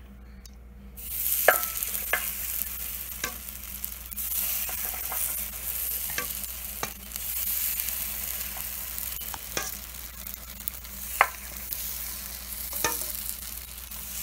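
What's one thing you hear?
Batter sizzles on a hot pan.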